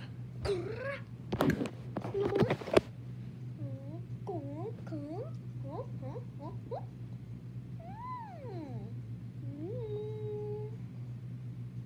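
A young child talks close to the microphone in a playful, sing-song voice.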